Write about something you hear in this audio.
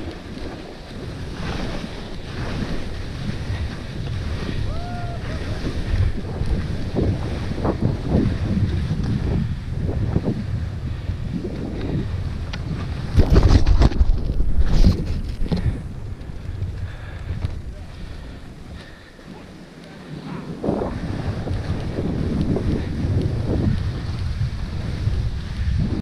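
Skis carve and hiss through deep powder snow.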